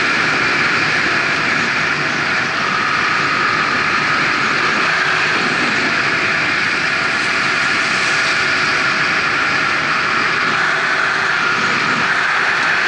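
An engine hums steadily at speed.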